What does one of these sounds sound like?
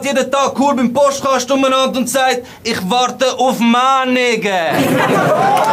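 A young man raps forcefully, close by.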